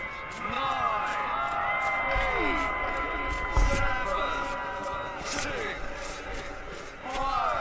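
Firework rockets whistle as they shoot upward.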